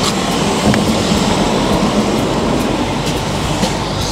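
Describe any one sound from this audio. Train doors slide open.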